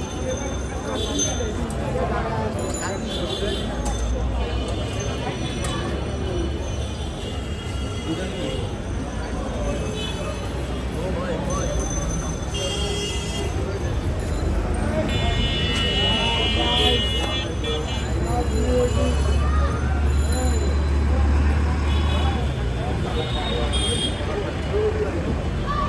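A busy outdoor street market hums with many voices chattering nearby.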